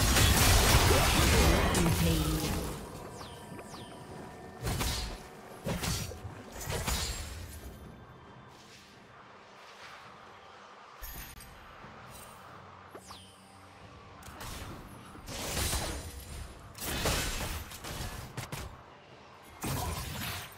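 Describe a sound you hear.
Game spells whoosh and crackle in short bursts.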